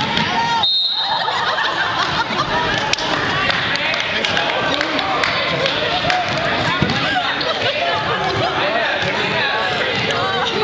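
Children chatter and shout in a large echoing gym.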